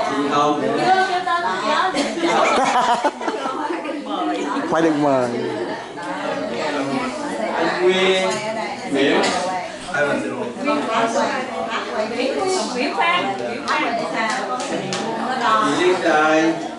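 A young man speaks into a microphone with animation, heard through loudspeakers in a large room.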